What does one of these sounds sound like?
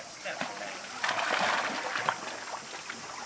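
Water splashes loudly as monkeys tussle.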